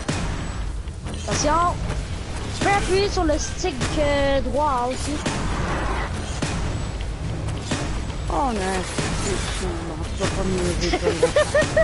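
A sword swings with a humming whoosh.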